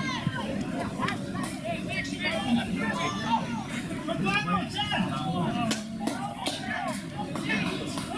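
Players thud together as a tackle brings a runner to the ground.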